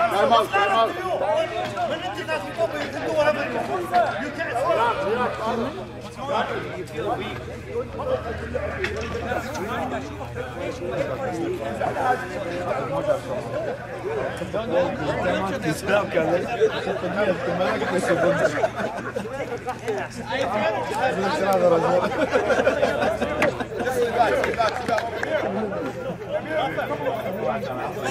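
Several men call out and talk to each other across an open outdoor pitch.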